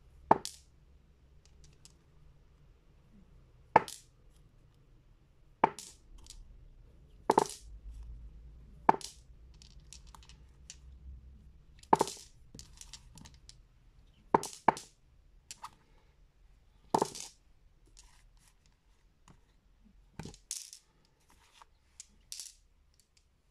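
Glass stones click sharply against each other as a hand picks them up.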